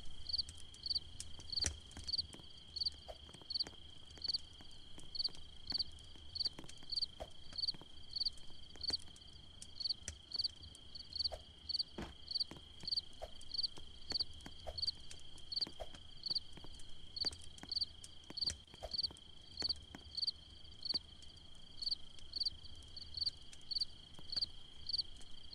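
A campfire crackles and pops.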